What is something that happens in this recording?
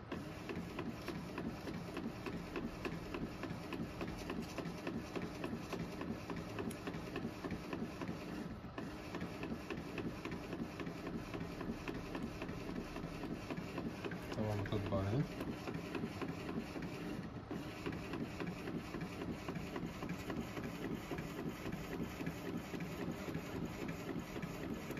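A printer whirs and clatters as it feeds out a page.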